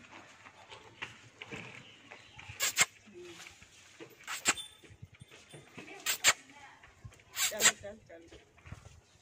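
A goat tears and crunches leafy stalks.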